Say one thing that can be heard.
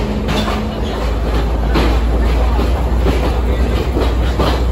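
A diesel locomotive engine rumbles close by.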